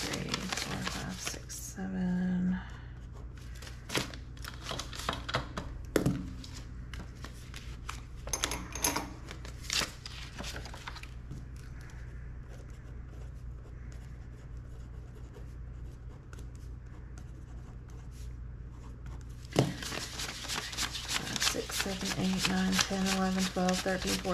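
Paper banknotes rustle and flick as they are counted.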